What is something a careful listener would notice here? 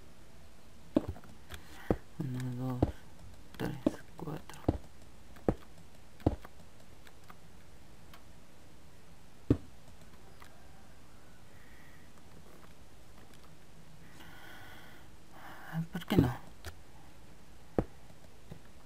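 Stone blocks are set down with short, dull knocks.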